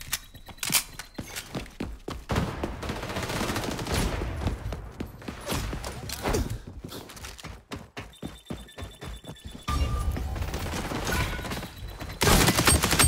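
Footsteps thud quickly on hard floors.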